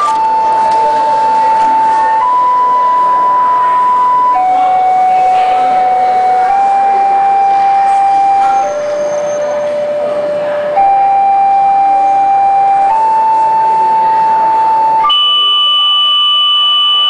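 Mobile phones play a melody of slow, steady electronic beeping tones, one note after another.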